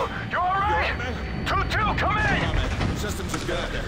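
A man calls out anxiously nearby.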